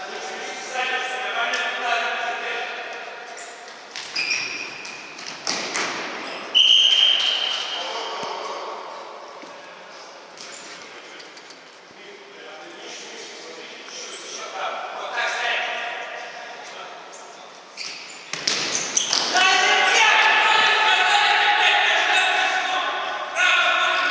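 A ball is kicked with sharp thumps in an echoing hall.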